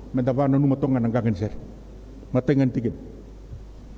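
An elderly man speaks loudly and with emphasis through a microphone in an echoing hall.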